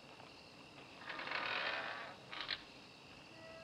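A door swings open with a soft rustle.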